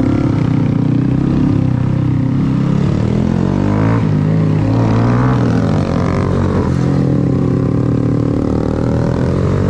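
Another motorcycle engine revs nearby.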